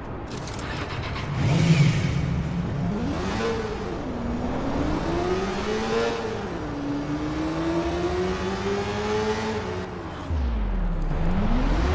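A motorcycle engine revs and roars as the bike speeds up and slows down.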